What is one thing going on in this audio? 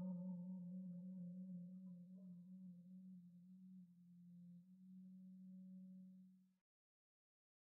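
A small wind ensemble plays a soft, low held chord that then stops.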